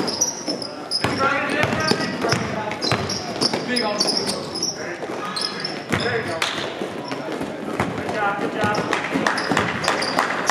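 Young men shout and call out in an echoing gym.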